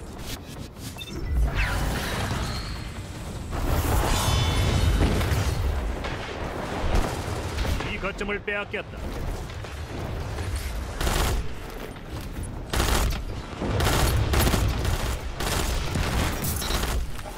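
Guns fire in sharp, rapid bursts.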